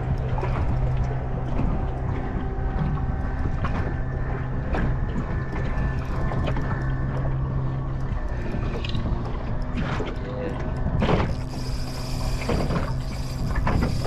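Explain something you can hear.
A fishing reel clicks as it is wound in.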